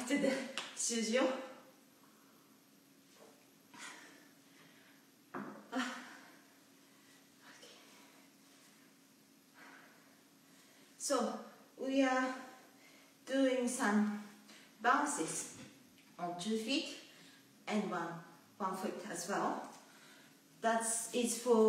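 A young woman talks close by, with animation.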